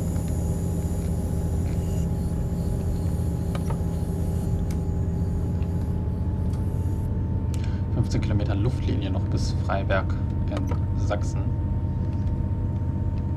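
A diesel railcar engine rumbles as the train runs along the track.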